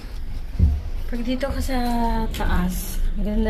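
A young girl speaks nearby.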